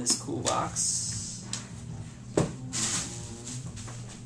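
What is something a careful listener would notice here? A plastic bag crinkles and rustles.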